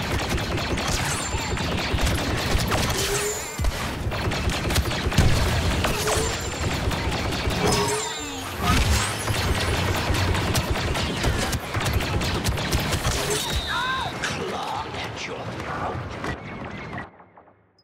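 Blasters fire in rapid bursts.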